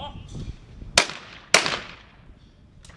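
A shotgun fires two loud shots in quick succession outdoors, each followed by a short echo.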